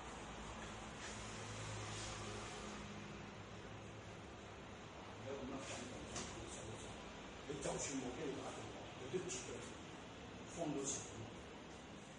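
Hands slap against arms.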